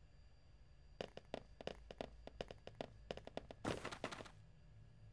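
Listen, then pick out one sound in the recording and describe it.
Several sets of footsteps walk on a hard floor in a large echoing hall.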